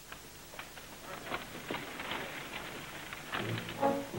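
Horse hooves and wagon wheels rumble on dirt outdoors.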